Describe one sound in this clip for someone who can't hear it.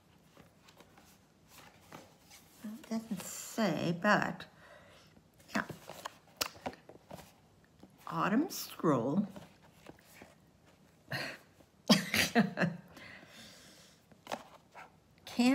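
Cardboard rustles and scrapes as a box is handled.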